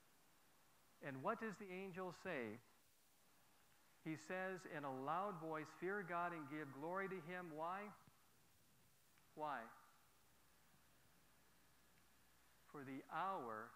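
A middle-aged man speaks calmly into a clip-on microphone, pausing between phrases.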